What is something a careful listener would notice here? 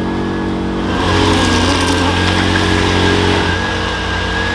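A wheel spins and churns through thick mud.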